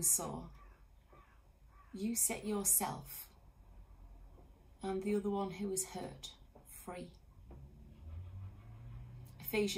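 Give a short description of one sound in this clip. A middle-aged woman reads aloud expressively, close to the microphone.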